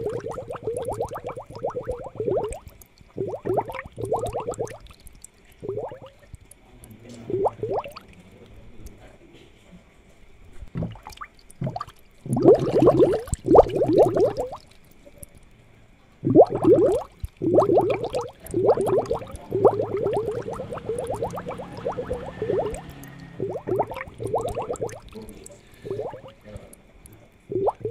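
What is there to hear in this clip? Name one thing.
Air bubbles gurgle and burble in water in uneven bursts.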